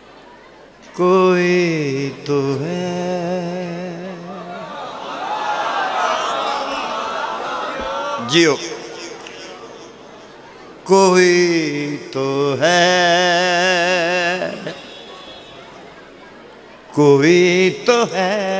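An elderly man sings in long, wavering notes through a microphone.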